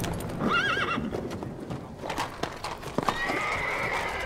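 Carriage wheels roll and rattle over cobblestones.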